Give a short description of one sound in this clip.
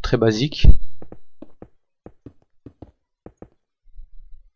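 Footsteps tap in a quick, even rhythm on a hard surface.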